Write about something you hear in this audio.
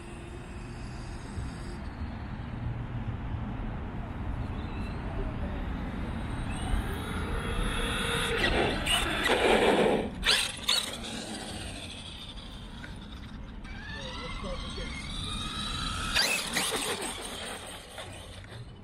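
A drone's propellers whir steadily close by.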